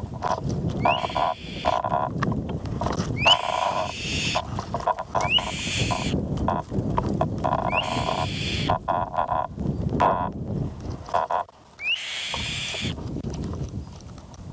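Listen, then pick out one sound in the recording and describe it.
Young birds call with repeated raspy, hissing cries close by.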